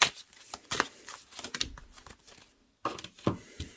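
Cards shuffle and slide against each other.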